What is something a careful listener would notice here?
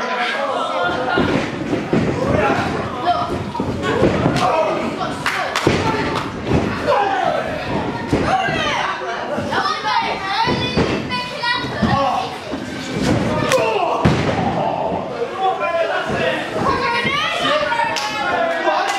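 Bodies slam onto a wrestling ring's canvas with loud thuds.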